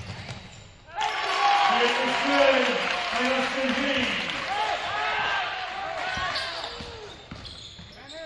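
A crowd in an echoing gym cheers loudly.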